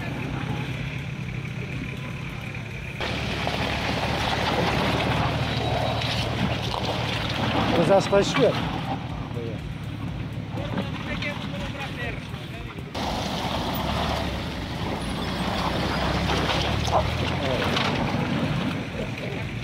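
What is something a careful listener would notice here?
An off-road vehicle's engine rumbles and strains as it climbs.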